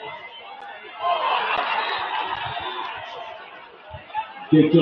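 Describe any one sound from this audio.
A crowd cheers in the stands outdoors.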